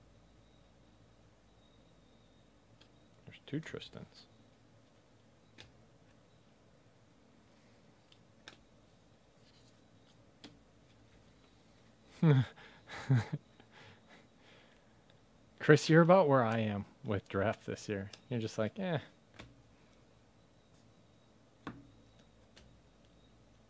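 Stiff cards slide and flick softly against each other as they are sorted by hand.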